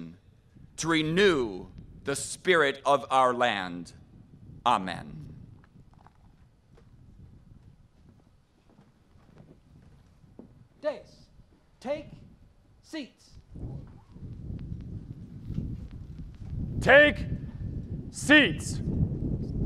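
A man calls out short loud commands over a loudspeaker outdoors.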